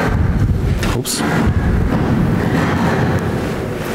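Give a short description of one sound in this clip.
A microphone thumps and rustles as it is handled.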